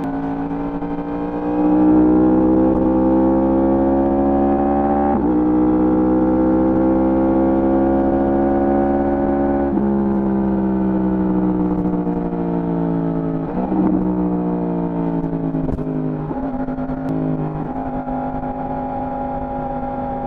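A motorcycle engine roars as the bike accelerates, rising in pitch and dropping with each gear change.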